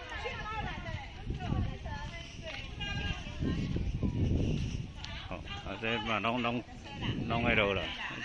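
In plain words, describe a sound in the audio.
Women talk nearby outdoors.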